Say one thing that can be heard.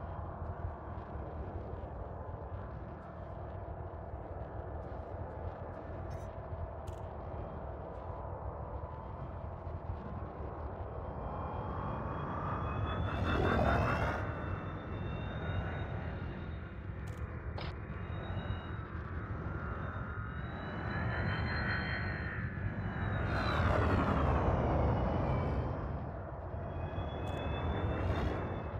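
A spaceship's engine hums low and steady.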